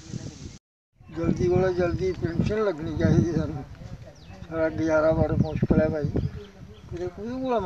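An elderly man speaks calmly close to the microphone.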